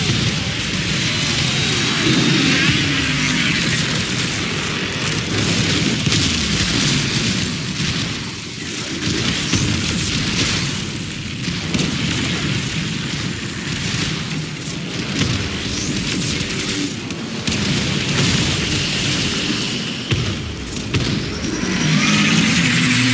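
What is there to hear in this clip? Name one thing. Energy beams crackle and zap loudly.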